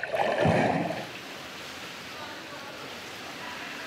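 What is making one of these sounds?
Water sloshes gently around people wading.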